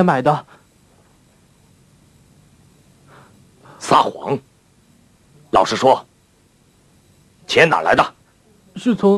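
A middle-aged man speaks calmly and firmly, close by.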